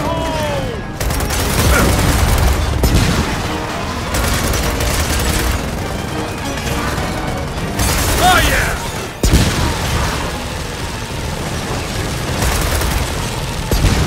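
Rapid gunfire bursts out in loud volleys.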